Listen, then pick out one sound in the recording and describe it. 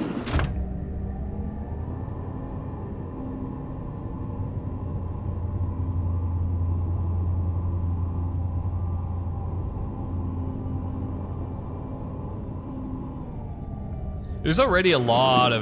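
An elevator hums steadily as it rides.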